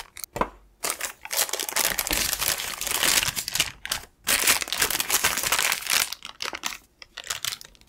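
Baking paper rustles as it is peeled away.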